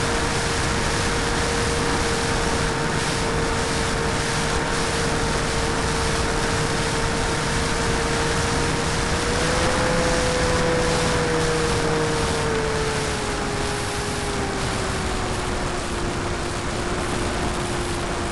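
An electric motor whines steadily close by, its pitch rising and falling slightly.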